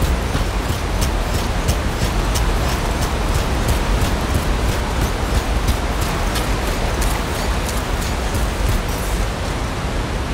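Heavy footsteps thud and clink in a steady rhythm.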